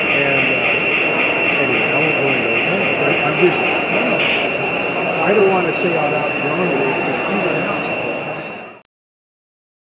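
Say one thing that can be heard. Model trains rumble and hum along their tracks.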